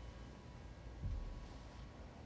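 A metal cup is set down on a cloth-covered table with a soft thump.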